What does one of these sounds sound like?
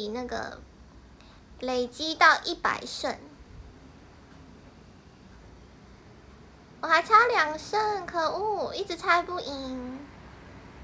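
A young woman talks casually and close up, with pauses.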